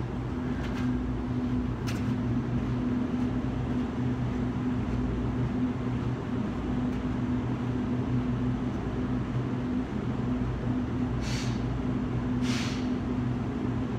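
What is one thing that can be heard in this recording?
Footsteps on concrete walk away and fade.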